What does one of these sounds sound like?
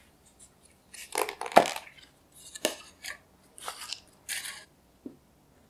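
A plastic lid is pried off a tub.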